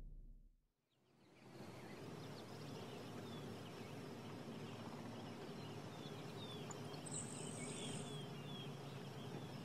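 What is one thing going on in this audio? Waves wash gently against a rocky shore outdoors.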